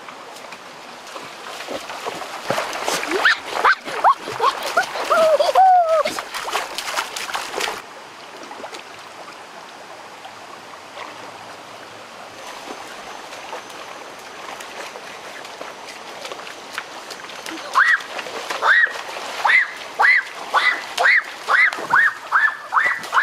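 A stream flows and babbles over stones.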